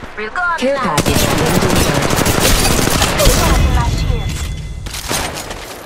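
Rapid gunfire bursts loudly and close by.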